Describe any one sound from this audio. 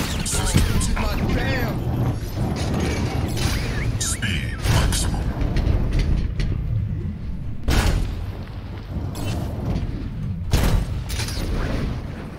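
A heavy metal ball rumbles as it rolls along.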